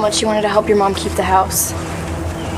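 A young woman speaks up sharply, close by.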